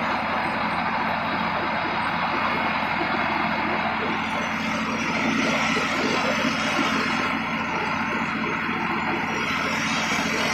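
A tractor engine rumbles loudly and steadily close by.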